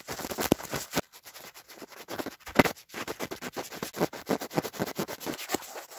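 Fabric rustles and brushes close against a microphone.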